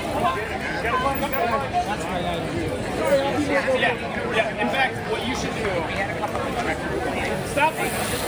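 A woman talks and cheers close by.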